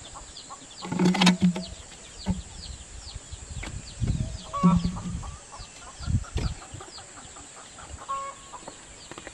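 A plastic pipe knocks and thumps against a brick wall.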